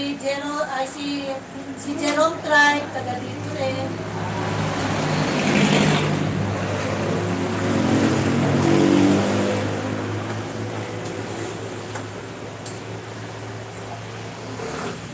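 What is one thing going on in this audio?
A gas burner roars steadily.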